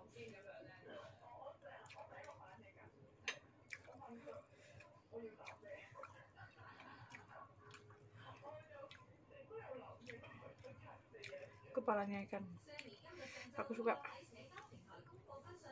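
A young woman chews food noisily close to a microphone.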